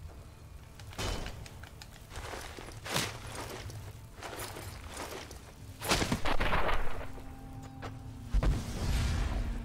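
Blows thud and crash in a close fight.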